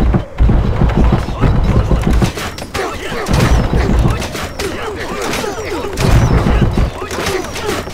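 Heavy bolts launch and thud in deep, booming bursts.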